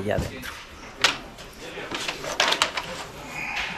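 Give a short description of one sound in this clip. Plastic knocks and clatters as a loudspeaker grille is handled.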